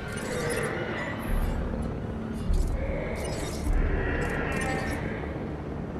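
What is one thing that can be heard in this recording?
A jeep engine hums as it drives over grass.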